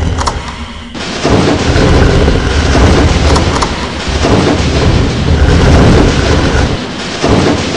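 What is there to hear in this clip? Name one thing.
A heavy mechanism grinds and rumbles.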